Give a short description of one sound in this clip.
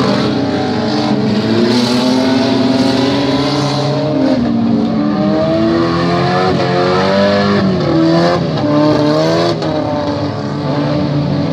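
Car engines roar and rev, rising and falling in pitch as cars race past.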